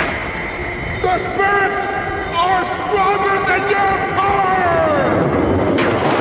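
An elderly man shouts and wails loudly nearby.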